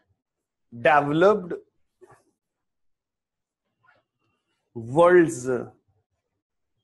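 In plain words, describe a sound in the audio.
A man speaks loudly and clearly in short bursts, heard through a microphone.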